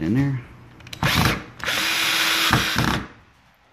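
A power drill whirs, driving a screw into wood.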